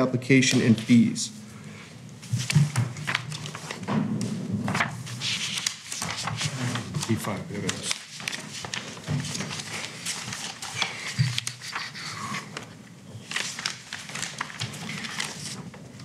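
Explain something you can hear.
Paper rustles and crinkles as pages are handled.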